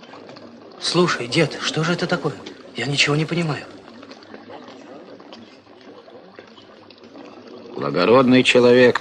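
A man speaks loudly and with animation nearby.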